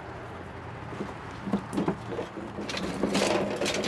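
A shovel scrapes and clatters among loose wooden boards.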